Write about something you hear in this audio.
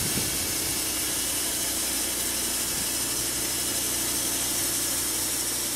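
An engine drones steadily.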